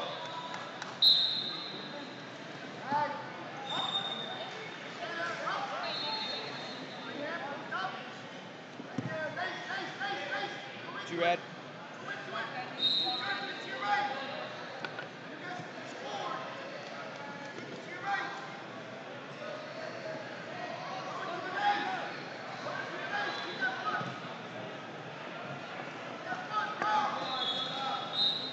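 Wrestlers' shoes squeak on the mat.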